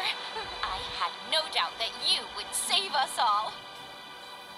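A young woman speaks warmly with emotion.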